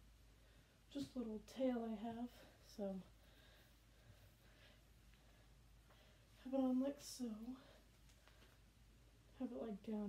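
A young woman speaks briefly and casually, close by.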